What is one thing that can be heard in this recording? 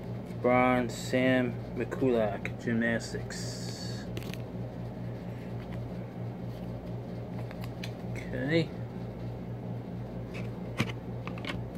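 Cards rustle and flick in a man's hands.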